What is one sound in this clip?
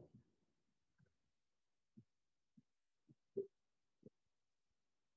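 A chair creaks and shuffles as a woman gets up.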